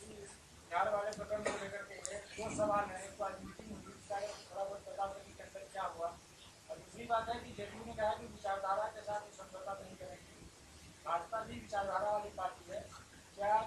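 A middle-aged woman speaks firmly into a microphone, in short bursts with pauses.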